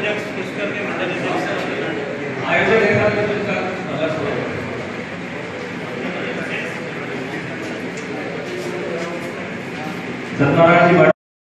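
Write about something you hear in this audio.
Several men talk over each other at a distance.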